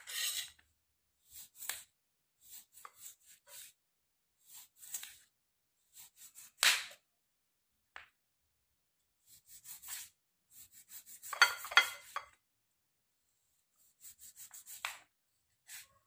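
A knife slices through a lime and taps on a plastic cutting board.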